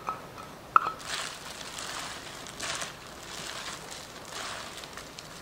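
Gloved hands toss leafy salad with a crinkling rustle.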